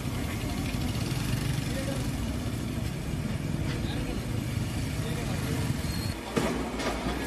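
A motor scooter engine hums as it rides past.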